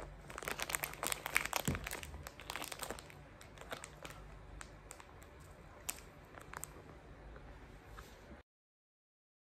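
A plastic wrapper crinkles and rustles close by.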